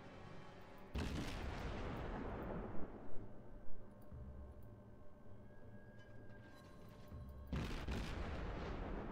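Heavy naval guns fire with loud booms that rumble away.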